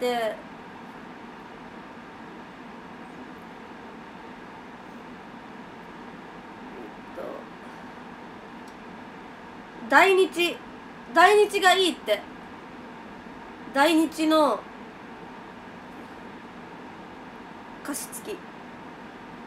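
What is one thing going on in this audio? A young woman speaks softly in short bursts, close by.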